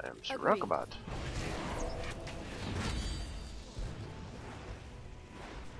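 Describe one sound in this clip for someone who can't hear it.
Magic blasts whoosh and crackle in a battle.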